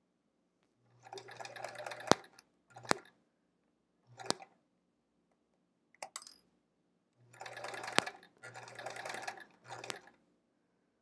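A sewing machine stitches in short bursts.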